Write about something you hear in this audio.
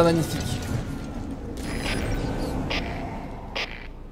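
A metal gate creaks and clanks.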